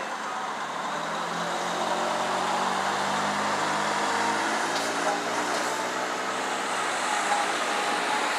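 A large truck's engine rumbles as it passes close by.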